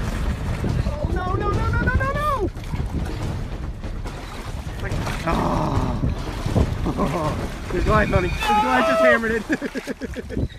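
Water sloshes and laps against a boat.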